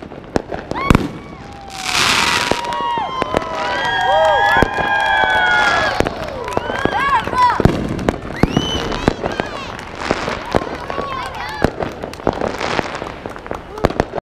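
Fireworks bang and crackle in the distance.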